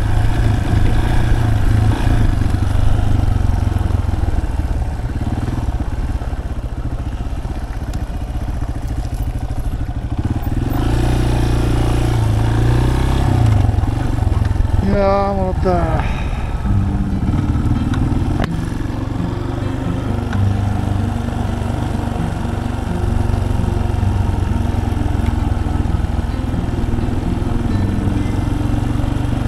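A motorcycle engine rumbles steadily close by, rising and falling as the rider changes speed.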